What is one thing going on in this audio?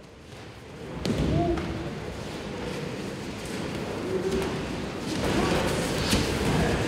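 Bare feet shuffle and thump on padded mats in a large echoing hall.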